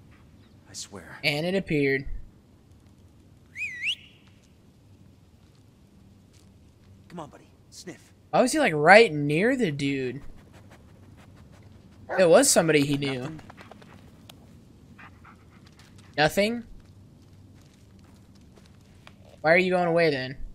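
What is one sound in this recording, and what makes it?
A dog whines and yelps nearby.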